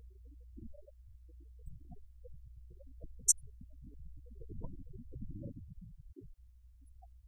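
A man speaks calmly into a microphone in a room.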